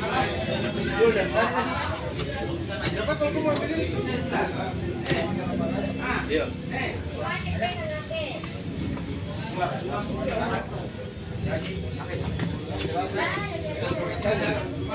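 A heavy cleaver chops through tuna onto a wooden block.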